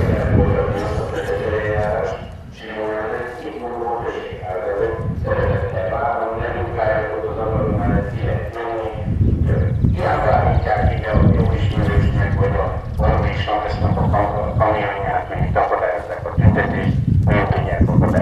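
Wind rumbles across the microphone.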